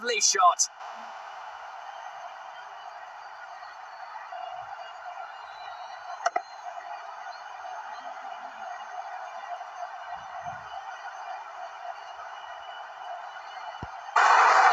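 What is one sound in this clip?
A large crowd cheers steadily.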